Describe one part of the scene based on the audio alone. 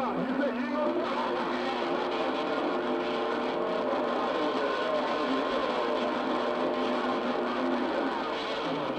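Steady whistling tones come from a shortwave radio.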